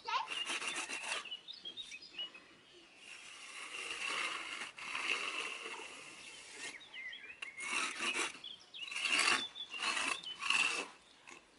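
A trowel scrapes and smooths wet concrete.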